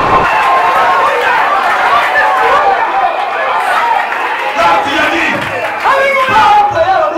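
A crowd of men sing and chant loudly nearby.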